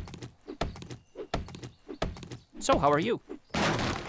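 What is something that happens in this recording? A stone axe chops into a tree trunk with sharp knocks.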